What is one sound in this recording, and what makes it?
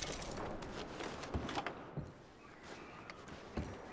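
Footsteps thud on wooden floorboards.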